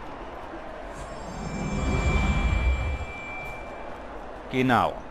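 A magic spell swells with a low rumble and a ringing shimmer.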